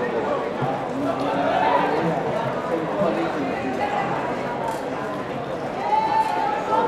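A distant crowd murmurs and chants in an open stadium.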